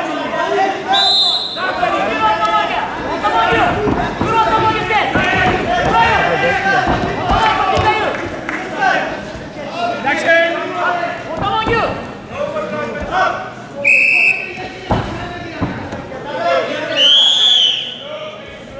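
A referee's whistle blows short sharp blasts.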